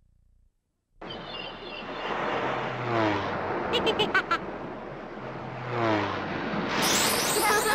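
A small propeller plane buzzes past, swooping by twice.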